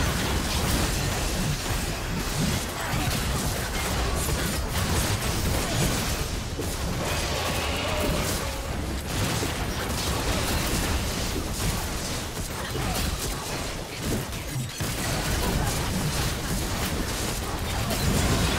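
Clashing blades and magic effects sound in a video game battle.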